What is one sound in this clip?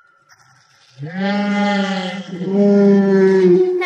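A creature lets out a long, drawn-out growling cry.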